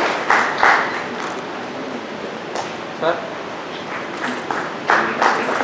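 A man speaks through a loudspeaker in an echoing hall.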